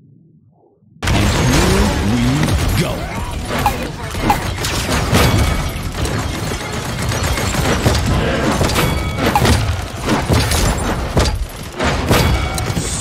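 Bombs explode with sharp, repeated bangs.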